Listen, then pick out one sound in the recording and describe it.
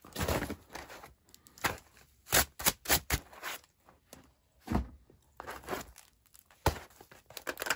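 A knife scrapes across crusty flatbread.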